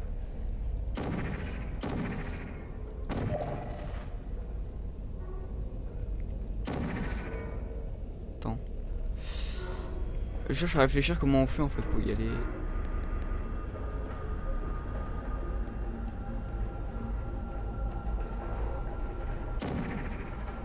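A sci-fi energy gun fires with short whooshing zaps.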